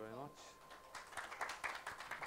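People applaud with scattered claps.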